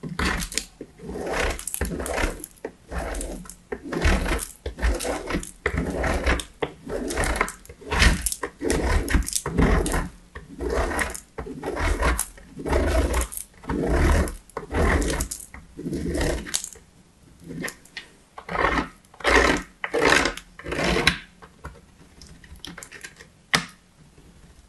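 Soap is grated in rhythmic, scratchy strokes against a metal grater, close up.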